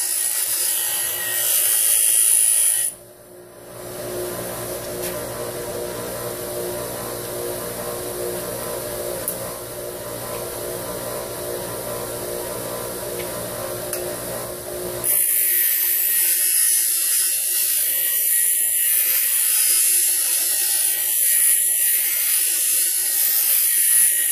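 A bench grinder grinds metal with a harsh, high hiss.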